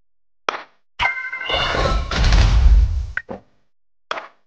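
Bright electronic chimes and a deep whoosh play as capsules light up.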